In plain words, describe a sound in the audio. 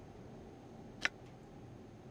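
A sharp click sounds once.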